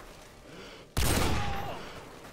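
A heavy sniper rifle fires a single booming shot.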